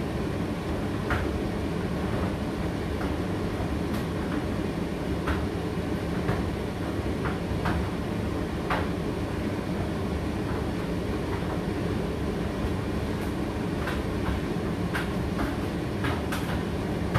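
A condenser tumble dryer hums and rumbles as its drum turns.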